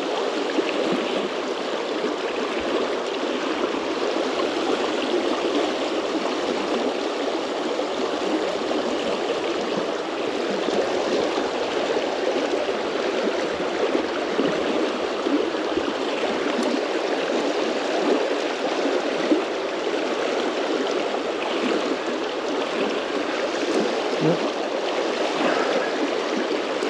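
A shallow river rushes steadily over rocks close by.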